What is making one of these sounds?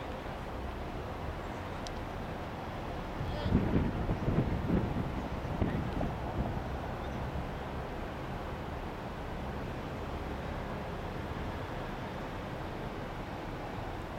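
Men chat at a distance.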